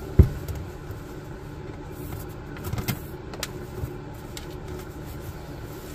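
Bootlaces rustle as they are pulled.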